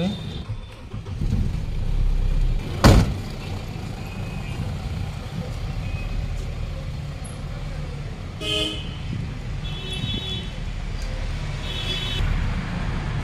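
A vehicle engine rumbles as it drives slowly away.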